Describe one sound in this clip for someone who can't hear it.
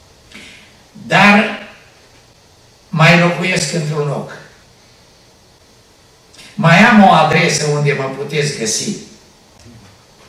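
An elderly man speaks with emphasis into a microphone, in short bursts with pauses.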